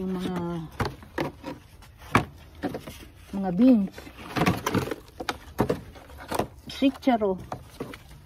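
Plastic planters knock and scrape against each other.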